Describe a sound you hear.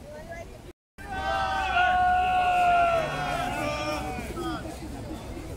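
A man shouts drawn-out commands loudly.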